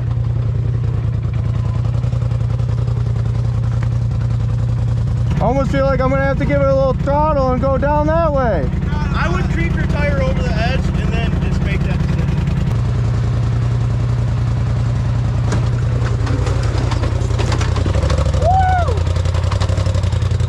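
An off-road vehicle's engine rumbles steadily and revs.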